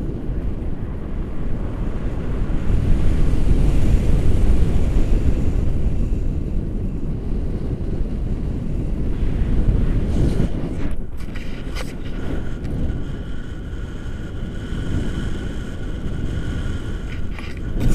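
Strong wind rushes and buffets past a microphone outdoors.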